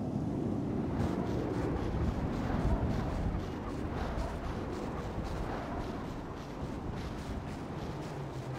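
Quick footsteps run on hard pavement.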